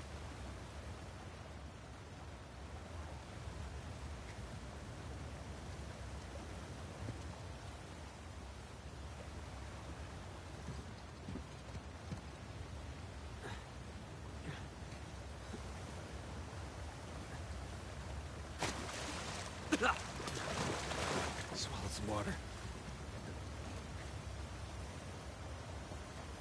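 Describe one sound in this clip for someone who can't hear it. Water rushes and churns.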